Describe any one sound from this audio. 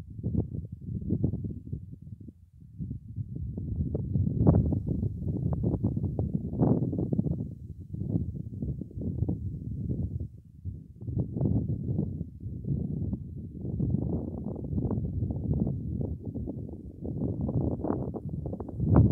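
Wind gusts roar low and heavy outdoors.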